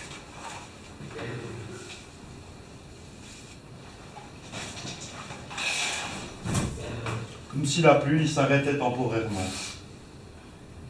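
A man reads aloud.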